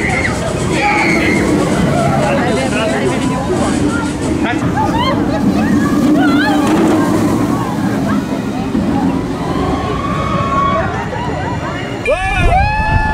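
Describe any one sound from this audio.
A roller coaster train roars along its track.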